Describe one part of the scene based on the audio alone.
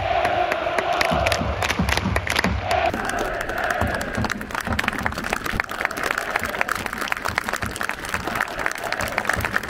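A large stadium crowd cheers and chants in a wide open space.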